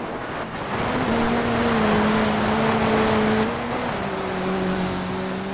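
Tyres skid and spray over loose gravel.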